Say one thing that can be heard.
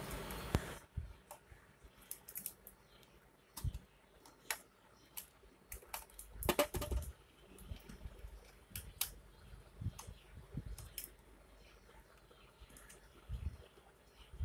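A cable rustles as it is handled close by.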